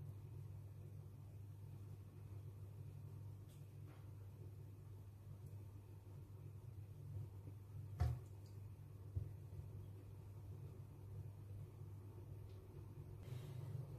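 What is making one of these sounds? Thick liquid pours softly from a ladle into a glass.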